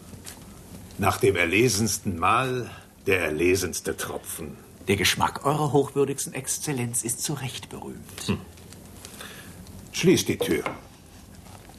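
A second man answers in a conversational tone.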